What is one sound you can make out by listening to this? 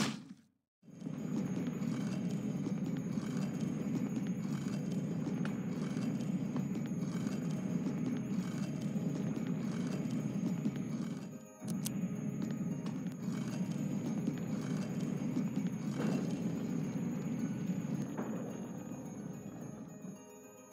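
Footsteps tap across a hard tiled floor.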